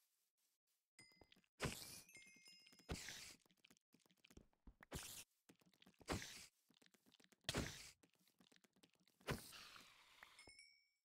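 A spider hisses and chitters up close.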